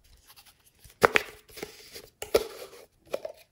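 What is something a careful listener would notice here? A plastic lid pops off a jar of foam beads.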